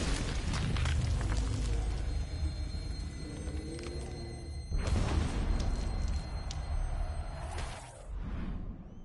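A large crowd roars loudly.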